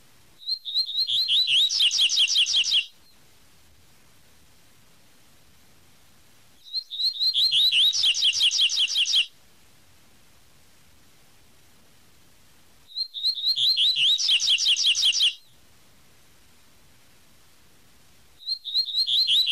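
A small songbird sings a quick, bright series of whistled notes, again and again with pauses between.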